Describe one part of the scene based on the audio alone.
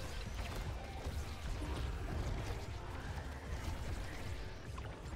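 Game sound effects of shots and hits play with a thumping beat.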